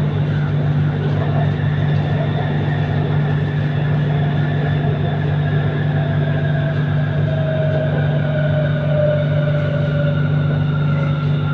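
A train's motor whines, slowly falling in pitch.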